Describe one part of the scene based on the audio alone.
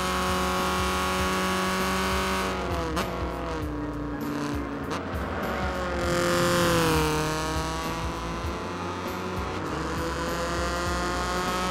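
A racing car engine screams at high revs, dropping in pitch as it shifts and rising again.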